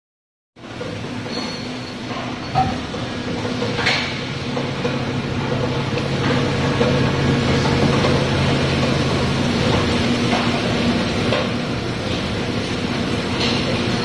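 An injection moulding machine hums.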